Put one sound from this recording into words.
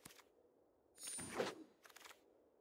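A card-game whoosh sweeps across as the cards clear away.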